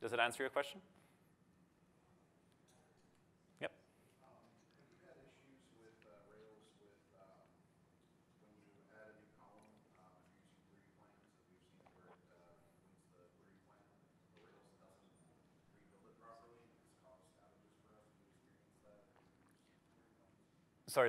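A man lectures calmly through a microphone in a large room, sounding distant.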